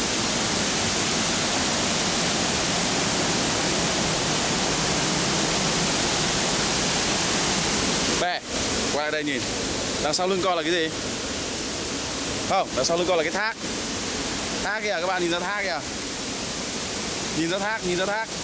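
A waterfall roars steadily close by.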